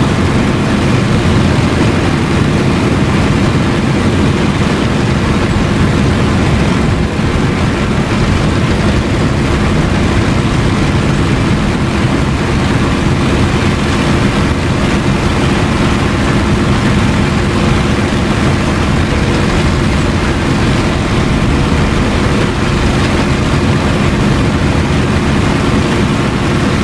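A propeller plane's engine drones loudly and steadily throughout.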